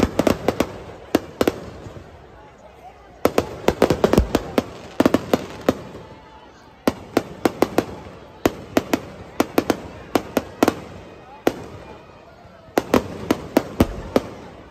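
Fireworks burst overhead with rapid, sharp bangs and crackles in bursts.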